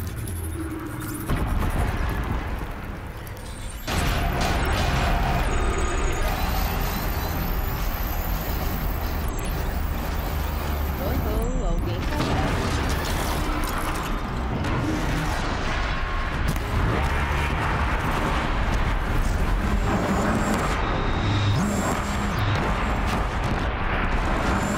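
Energy blasts zap and hum.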